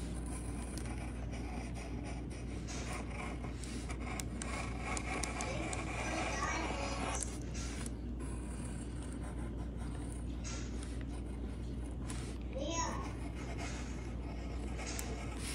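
A pencil scratches softly across wood.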